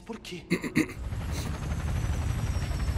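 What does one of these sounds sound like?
An aircraft engine roars.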